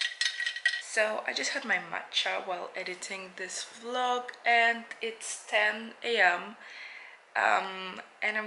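A young woman talks with animation close to the microphone.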